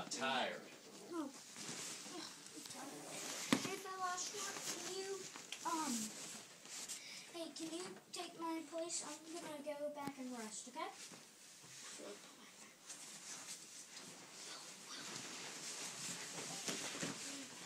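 Inflatable plastic rustles and squeaks as a child moves inside it.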